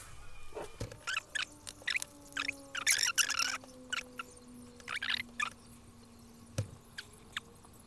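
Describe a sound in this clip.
Small plastic parts click and tap together.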